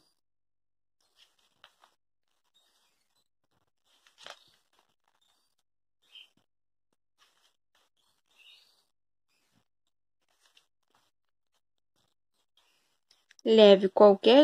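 Glossy catalogue pages are turned by hand.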